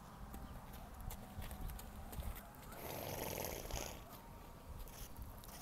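A horse tears and chews at dry grass.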